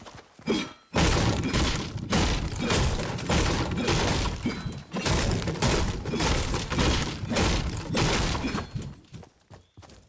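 A pickaxe chops repeatedly into wood with loud thuds.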